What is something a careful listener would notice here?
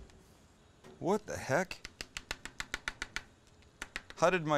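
A metal spatula scrapes rapidly against a pan.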